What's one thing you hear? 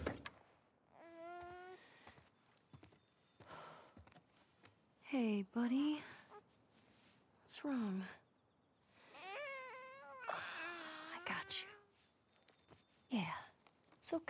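A young woman speaks softly and tenderly.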